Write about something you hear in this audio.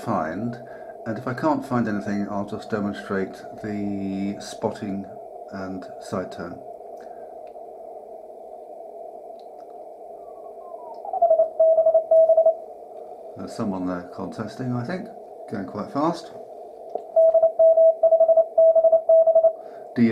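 A radio receiver hisses steadily.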